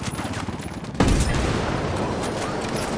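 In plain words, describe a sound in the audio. A helicopter explodes with a roar.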